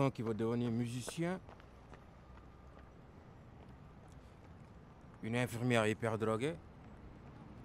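A young man speaks calmly and closely.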